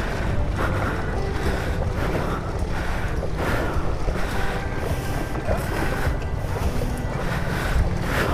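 A motorbike engine idles close by.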